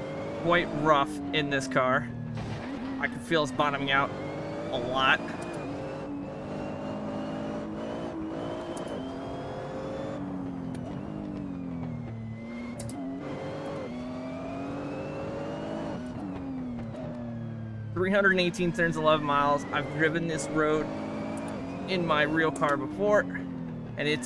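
Tyres squeal as a racing car slides through tight corners.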